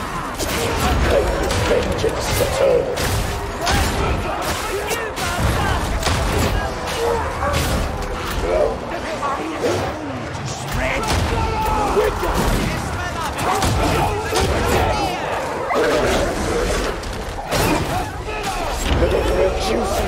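Monsters screech and snarl.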